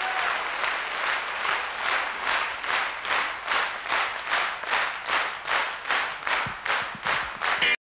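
A large audience claps in rhythmic unison, gradually speeding up.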